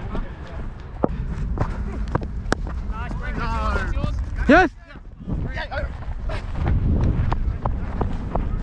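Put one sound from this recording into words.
Footsteps thud quickly on turf as a player runs.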